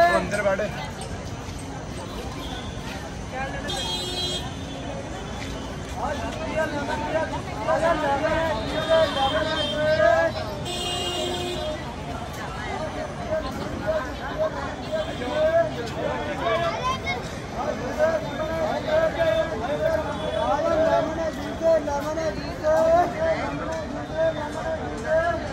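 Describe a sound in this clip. A crowd of men and women chatters and murmurs all around outdoors.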